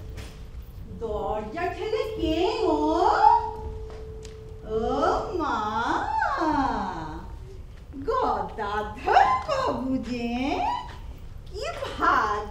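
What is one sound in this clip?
A young woman sings, heard from a distance in a large hall.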